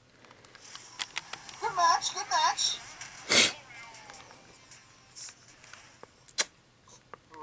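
Buttons on a handheld game console click under thumb presses.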